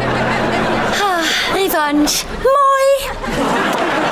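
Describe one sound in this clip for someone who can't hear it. A young woman speaks with animation, in a sing-song voice.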